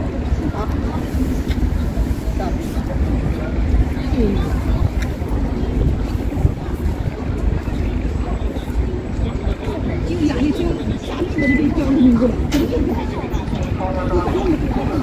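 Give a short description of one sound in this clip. A ferry's engine rumbles low and steady across the water.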